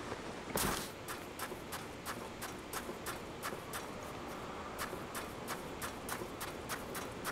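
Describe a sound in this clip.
Quick footsteps tap steadily on sand.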